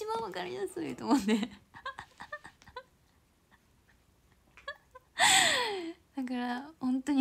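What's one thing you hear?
A young woman talks playfully close to a microphone.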